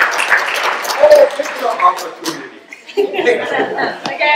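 A man speaks and laughs to the room.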